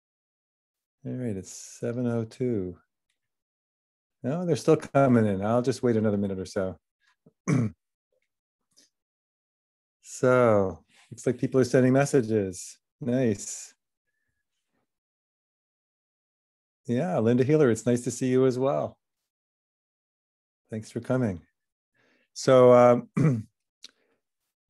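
An older man speaks calmly and warmly into a headset microphone over an online call, in bursts with pauses.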